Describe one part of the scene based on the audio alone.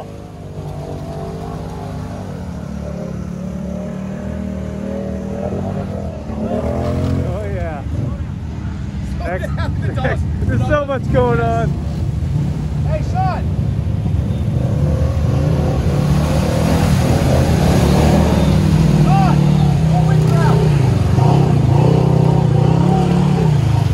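Thick mud and water slosh and splash under the wheels.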